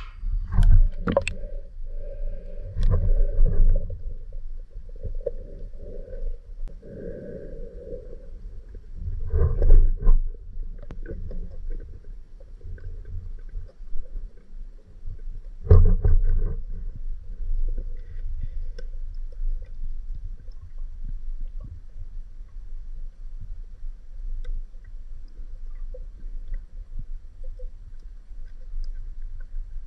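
Water rumbles and gurgles, heard muffled from underwater.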